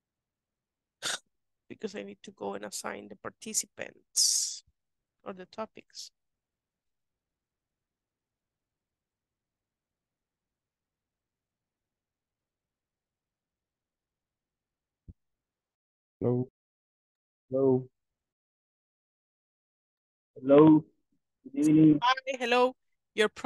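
A young woman speaks calmly over an online call, in short bursts.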